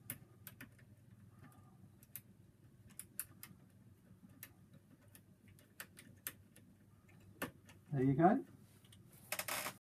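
Small metal parts click and tap sharply.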